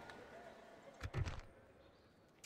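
A short game interface click sounds as a panel opens.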